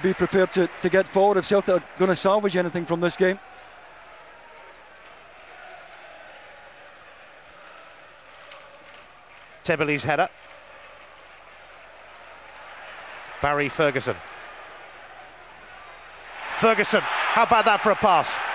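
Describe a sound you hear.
A large stadium crowd murmurs and roars in the open air.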